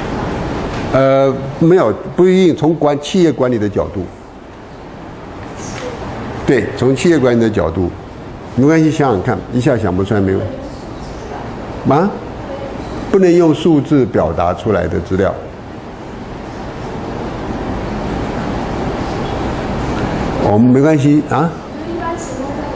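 A man speaks calmly through a microphone and loudspeakers in a large room, pausing between phrases.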